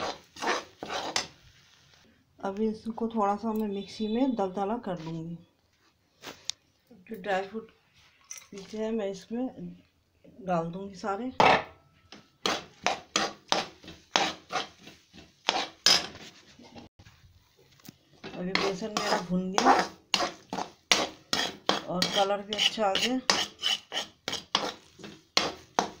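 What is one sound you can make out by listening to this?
A metal spatula scrapes and taps against a metal pan.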